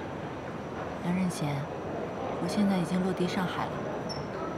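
A young woman speaks calmly into a phone.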